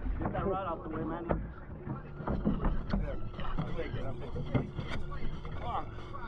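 A fish splashes in the water beside a boat.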